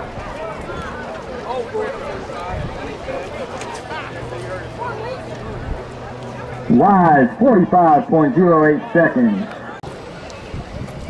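A crowd of spectators chatters in the open air.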